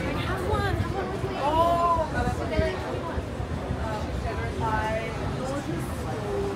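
Traffic hums steadily on a busy street.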